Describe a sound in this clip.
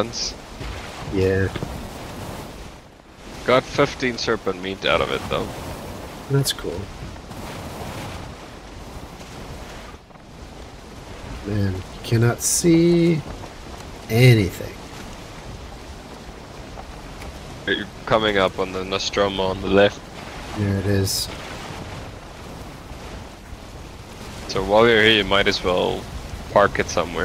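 Waves rush and splash against a sailing boat's hull.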